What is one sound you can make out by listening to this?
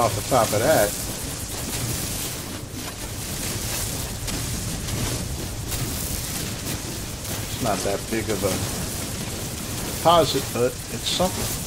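A mining laser hisses and crackles steadily.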